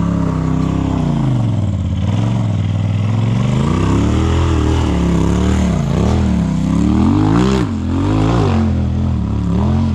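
Tyres crunch and grind over rocks.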